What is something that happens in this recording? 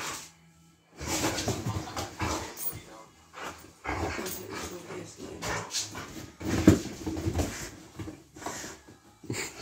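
A large dog scrabbles and climbs onto a leather sofa.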